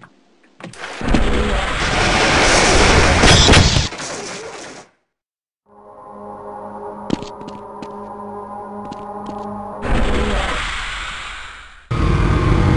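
Fiery blasts roar and crackle nearby.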